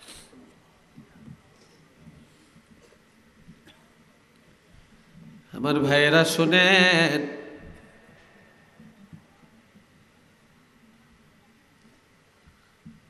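An elderly man speaks quietly through a microphone and loudspeakers.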